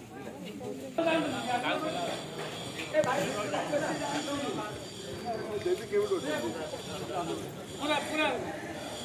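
Men talk loudly close by, with several voices overlapping.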